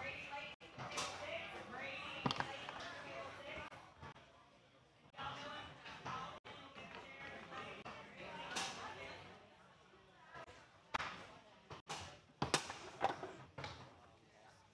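A ball clacks sharply against foosball figures and table walls.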